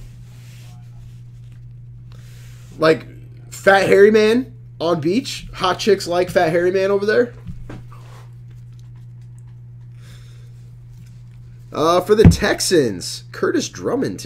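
Trading cards shuffle and riffle in hands.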